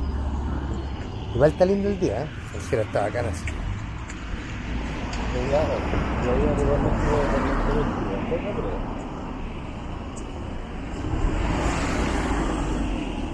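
Cars drive past nearby with a passing rush of tyres.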